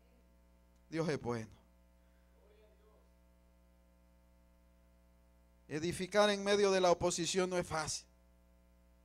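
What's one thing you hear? A man preaches loudly through a microphone, in short bursts with pauses.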